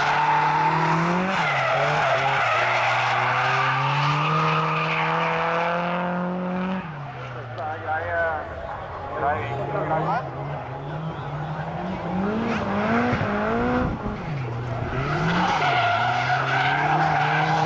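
A car engine roars loudly as it revs and drifts past.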